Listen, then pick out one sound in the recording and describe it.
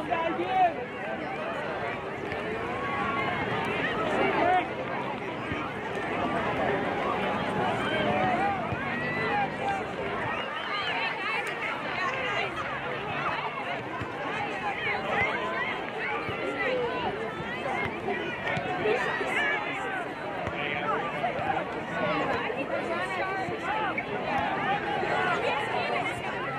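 Many children chatter and shout across an open field outdoors.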